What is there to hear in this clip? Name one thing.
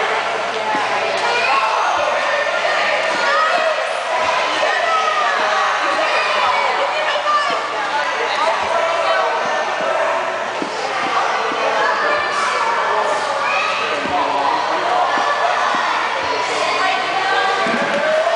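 Water splashes as a child kicks and paddles.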